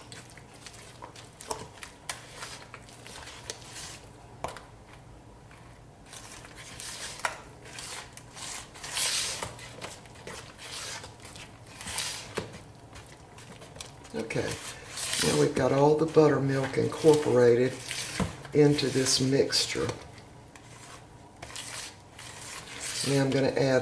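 A spatula scrapes and slaps thick dough in a plastic bowl.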